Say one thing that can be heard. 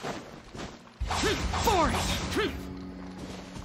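A magical whoosh rushes by.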